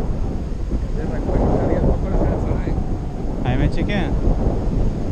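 A young man speaks loudly over the wind.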